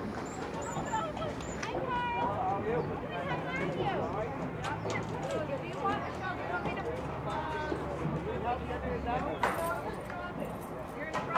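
Young women cheer and shout excitedly outdoors.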